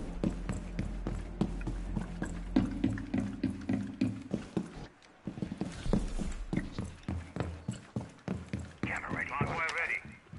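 Footsteps thud quickly on a wooden floor and stairs.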